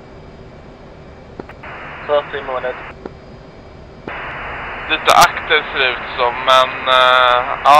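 A jet engine hums steadily in the background.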